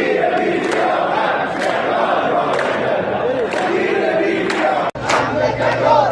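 A crowd of men chants loudly outdoors.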